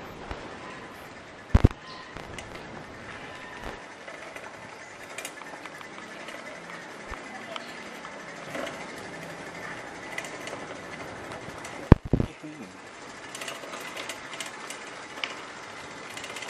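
Bicycle tyres roll over paving bricks with a steady rumble.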